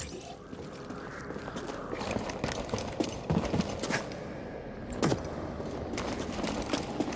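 Footsteps run quickly over rocky ground.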